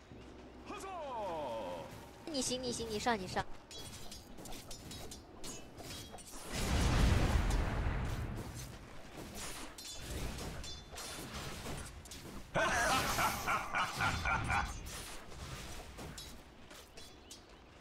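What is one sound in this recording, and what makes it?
Magic spells burst and crackle during a fantasy battle.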